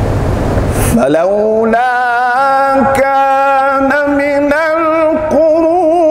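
A man chants in a long, drawn-out melodic call through a loudspeaker, with echo.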